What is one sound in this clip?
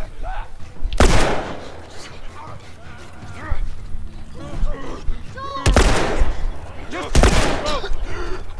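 A pistol fires loud, echoing shots.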